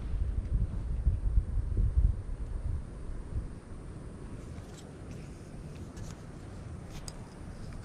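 A fishing reel clicks as its handle turns.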